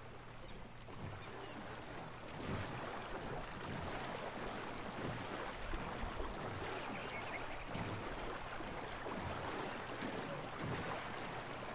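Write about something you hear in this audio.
Oars splash and paddle through water.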